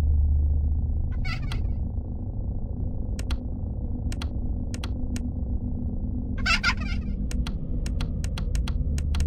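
A flashlight clicks on and off repeatedly.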